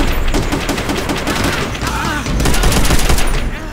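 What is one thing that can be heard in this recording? An aircraft crashes with a loud explosion.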